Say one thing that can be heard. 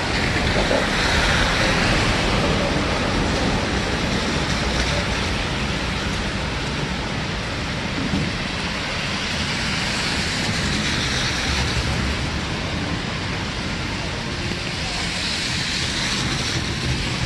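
A busy city street hums steadily in the background.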